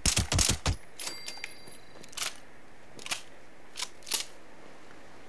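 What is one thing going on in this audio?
A gun's mechanism clicks and clacks as it is reloaded.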